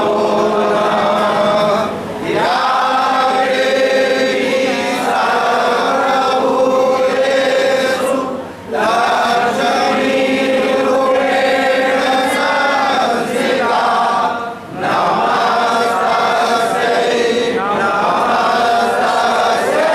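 A group of men sing a slow prayer together.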